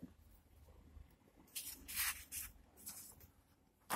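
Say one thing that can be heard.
A sheet of paper rustles as it is lifted.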